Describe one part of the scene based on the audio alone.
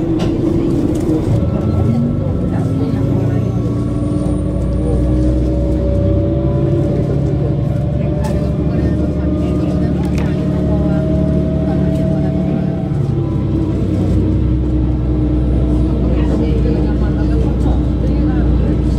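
A vehicle's engine drones steadily as it travels along.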